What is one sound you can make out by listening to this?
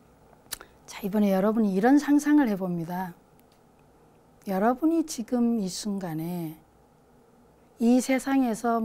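A woman speaks calmly and slowly into a microphone, with pauses.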